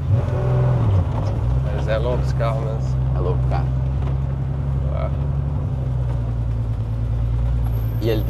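A car engine drones steadily from inside the car.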